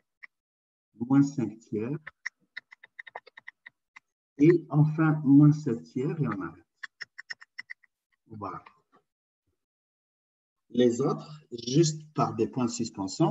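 A man speaks calmly through an online call, pausing between phrases.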